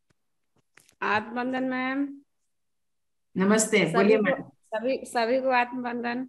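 A middle-aged woman talks with animation over an online call.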